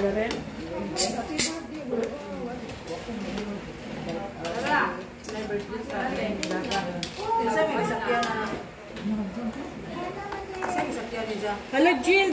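A middle-aged woman talks close by in a lively, chatty way.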